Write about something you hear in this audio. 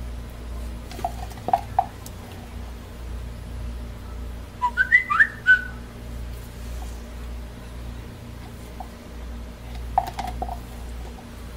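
A plastic spatula taps and scrapes against a plastic cup.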